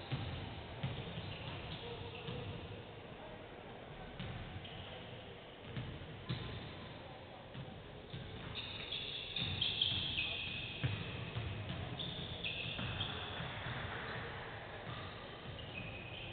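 Basketballs bounce on a wooden floor in a large echoing hall.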